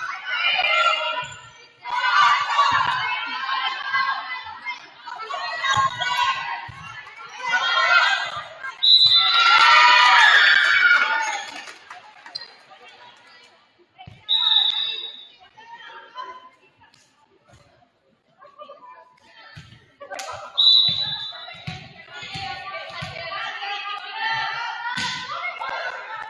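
Young women shout and cheer loudly in an echoing gym.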